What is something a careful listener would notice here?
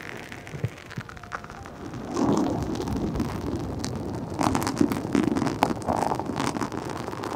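Fingers rub and scratch a soft fluffy cover on a microphone, close up.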